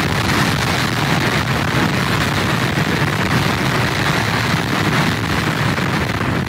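Strong wind roars and buffets outdoors.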